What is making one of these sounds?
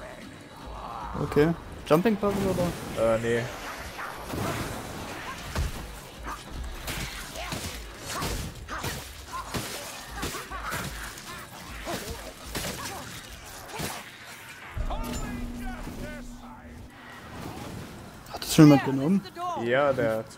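Heavy blows strike and clash in a fight.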